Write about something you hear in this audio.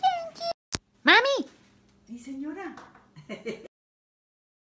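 An older woman speaks and laughs cheerfully close by.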